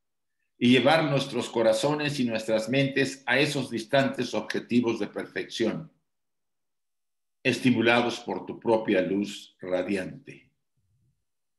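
A man reads aloud calmly, heard through an online call.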